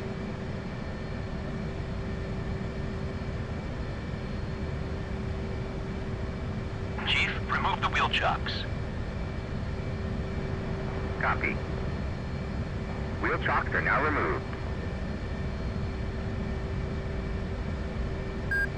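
A jet engine idles with a steady low rumble.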